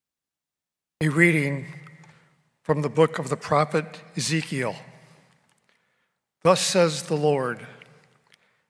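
A young man reads out through a microphone in a large echoing hall.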